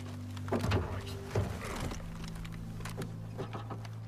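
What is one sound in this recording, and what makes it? A car door clunks open.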